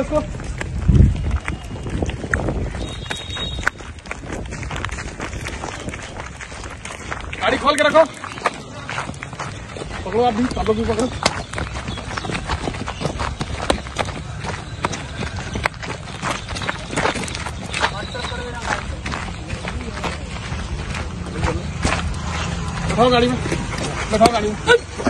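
Footsteps crunch and shuffle on gravel and paving.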